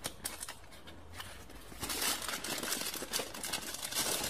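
A plastic wrapper crinkles as hands pull it out.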